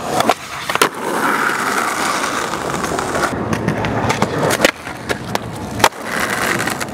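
A skateboard tail snaps and clacks against the ground.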